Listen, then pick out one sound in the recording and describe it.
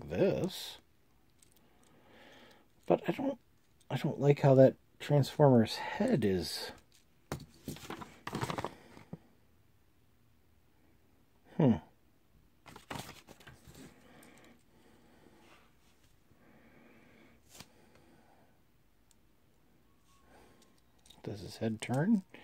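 Small plastic toy parts click and snap as they are handled.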